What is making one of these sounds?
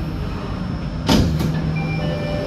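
Train doors slide open with a thud.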